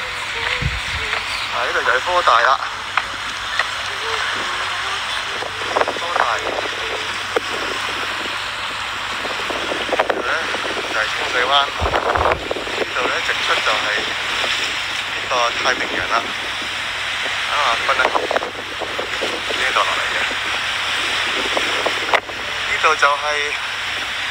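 Sea waves wash steadily against rocks outdoors.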